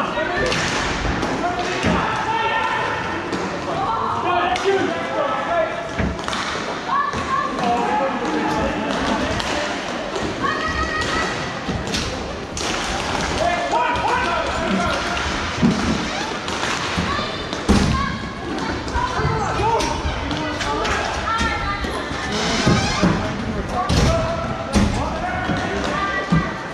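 Several voices call out across a large echoing hall.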